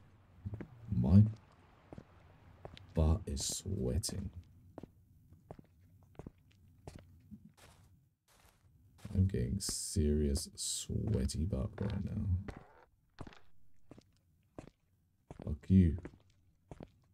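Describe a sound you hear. A man talks into a close microphone in a low voice.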